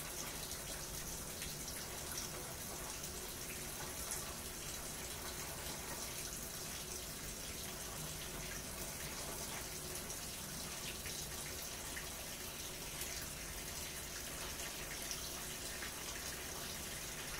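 A front-loading washing machine runs with a steady churning hum.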